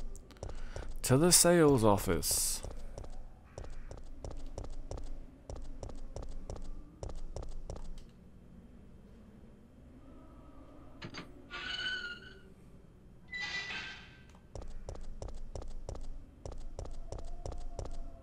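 Footsteps tap quickly on hard pavement.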